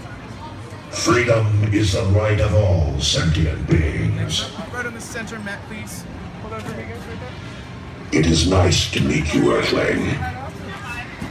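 A deep, booming man's voice speaks loudly through a loudspeaker.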